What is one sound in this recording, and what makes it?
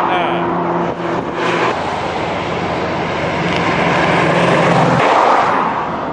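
An old car engine idles and rumbles close by.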